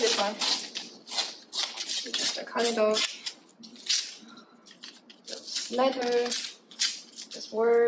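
Paper tears slowly.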